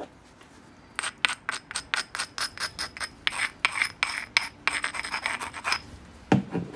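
A hammerstone rapidly scrapes and taps against the edge of a stone.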